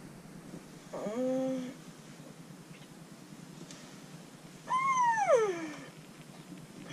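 A young woman groans and sighs wearily close by.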